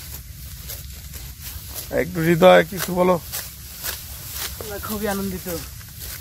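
Sickles swish and crunch through dry rice stalks.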